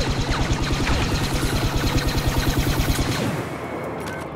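A blaster rifle fires in rapid bursts.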